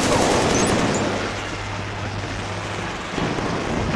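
Rapid gunfire crackles from a rifle.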